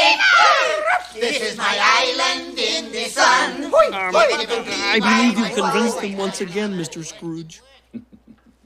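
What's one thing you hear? A man sings cheerfully, close by.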